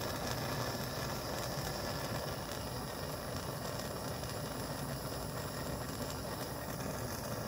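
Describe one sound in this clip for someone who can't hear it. A gas torch flame roars steadily.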